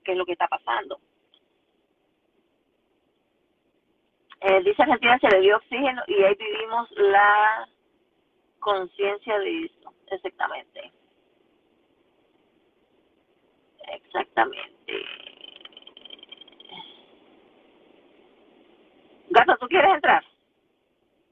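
A woman talks close to a phone microphone, in bursts with pauses.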